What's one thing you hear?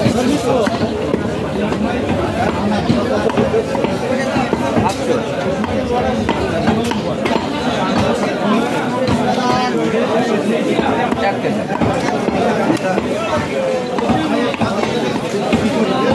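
Several men chatter nearby in a busy crowd.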